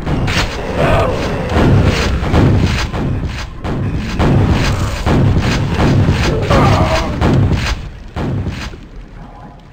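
A shotgun fires again and again in quick, booming blasts.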